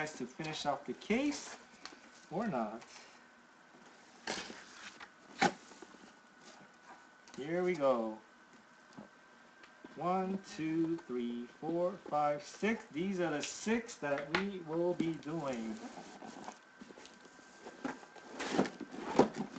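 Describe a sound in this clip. Cardboard box flaps rustle and scrape as they are handled.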